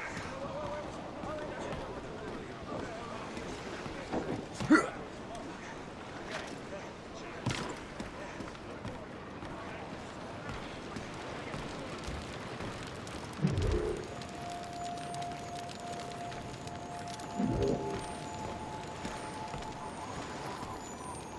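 Footsteps thump on wooden boards.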